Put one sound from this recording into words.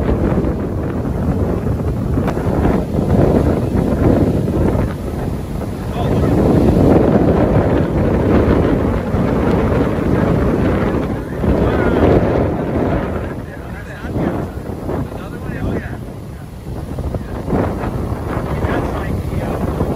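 Wind blows strongly outdoors.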